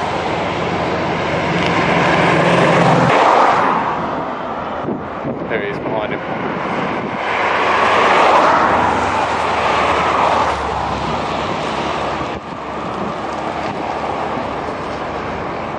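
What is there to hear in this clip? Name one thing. Cars rush past one after another on a road.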